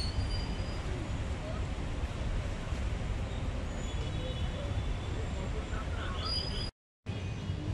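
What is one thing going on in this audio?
A woman's sandals scuff on a dirt path.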